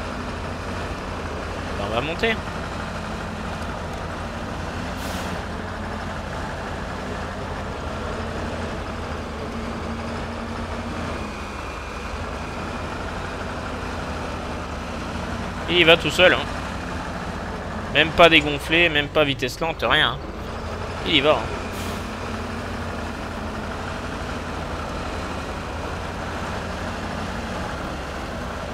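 A truck engine rumbles steadily as it crawls over rocks.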